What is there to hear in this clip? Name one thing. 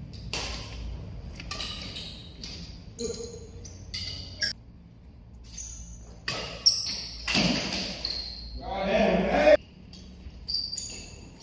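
Badminton rackets hit a shuttlecock with light pops.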